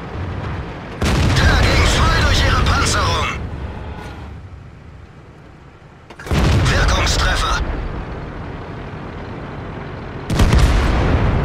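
A tank cannon fires with loud booms now and then.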